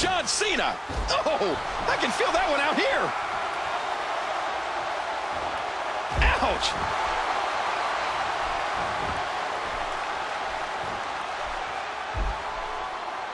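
A body thuds onto a wrestling ring mat.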